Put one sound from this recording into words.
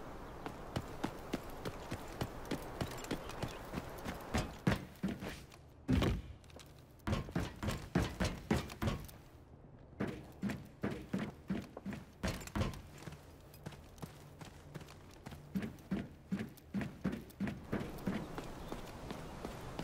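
Footsteps thud quickly on hard ground and floors.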